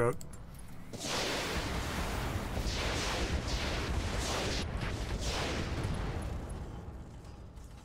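Weapon blasts hit with rumbling explosions.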